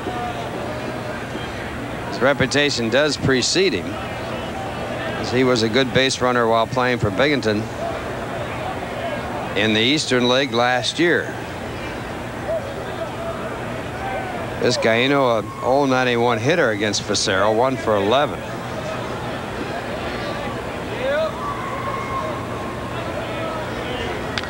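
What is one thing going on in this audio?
A crowd murmurs steadily in a large stadium.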